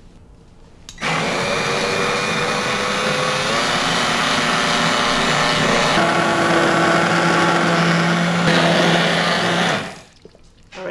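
An immersion blender whirs loudly as it purées soup.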